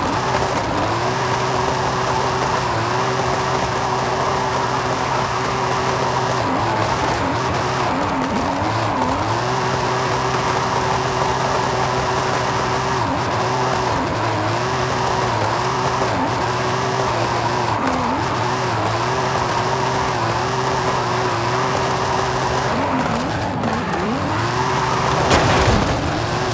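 A car engine roars at high revs, dipping briefly now and then.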